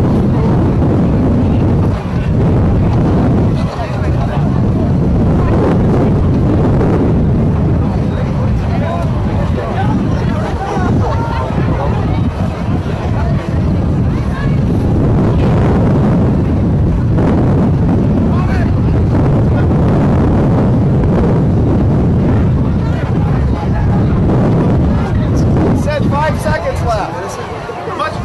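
Teenage boys and men talk and call out nearby.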